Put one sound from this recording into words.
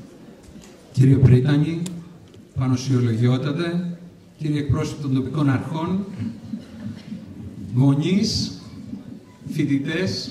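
A man speaks into a microphone through loudspeakers in a large hall.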